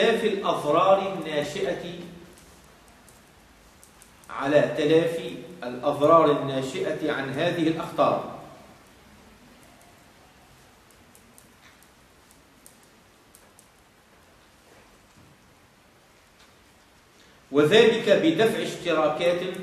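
A man speaks calmly, in bursts with long pauses.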